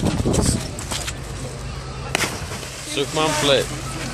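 A person plunges into the sea from a height with a heavy splash.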